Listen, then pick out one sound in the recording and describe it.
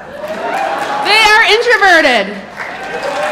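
A group of young people cheers and shouts together.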